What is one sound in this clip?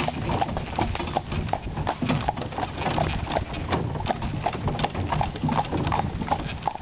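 Horse hooves clop steadily on a gravel path.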